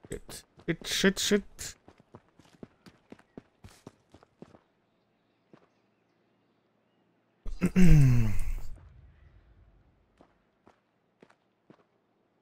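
Footsteps thud quickly on soft forest ground.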